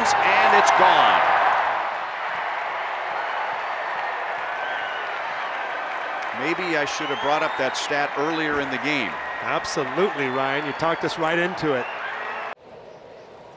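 A large stadium crowd cheers and roars.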